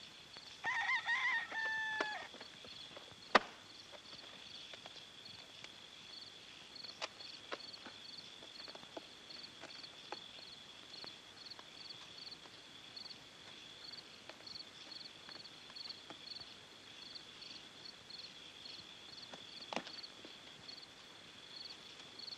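Boots scrape softly against a stone wall as men climb it.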